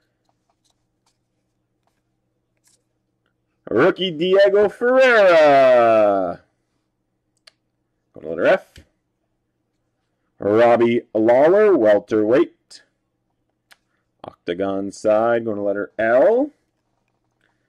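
Trading cards slide and flick against each other as they are shuffled.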